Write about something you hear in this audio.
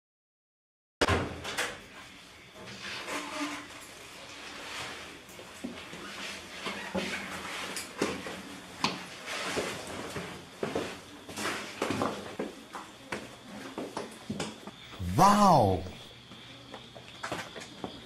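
A woman's footsteps tap on stairs and a hard floor.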